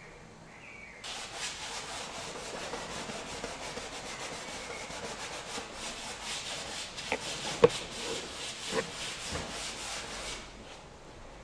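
A cloth rubs briskly across a canvas.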